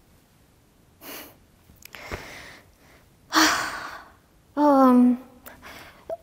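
A young woman speaks with animation into a microphone close by.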